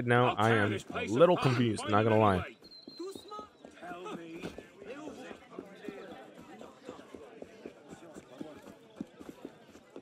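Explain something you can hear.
Footsteps run quickly over cobblestones.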